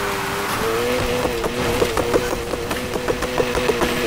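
Gravel crunches under sliding tyres.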